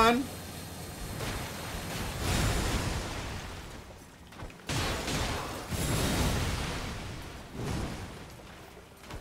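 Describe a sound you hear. Magical blasts burst and crackle loudly.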